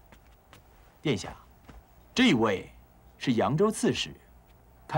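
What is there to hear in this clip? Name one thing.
A man speaks loudly and formally, close by.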